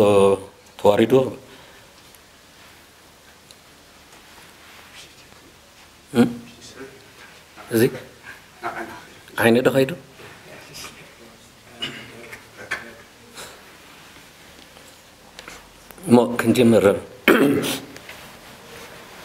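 A man speaks into a microphone in short, halting bursts.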